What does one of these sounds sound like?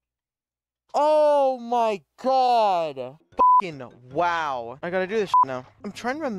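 A young man shouts and exclaims with excitement close to a microphone.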